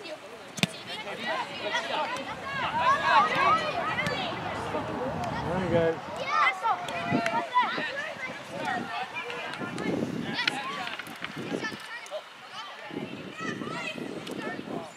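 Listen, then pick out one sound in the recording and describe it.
Young players shout to each other across an open field.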